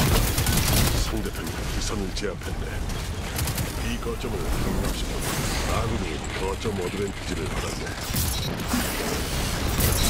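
Energy blasts crackle and boom.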